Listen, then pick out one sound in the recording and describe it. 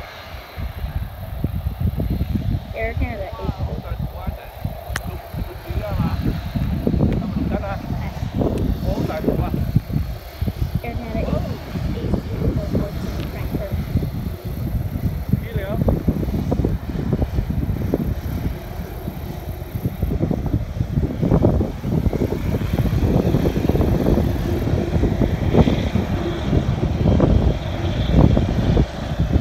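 Wind blows hard outdoors, buffeting and rumbling.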